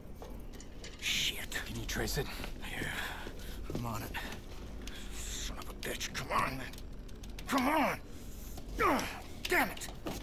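A man speaks tensely and curses with frustration.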